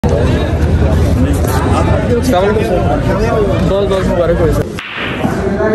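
Several men talk loudly in a noisy crowd.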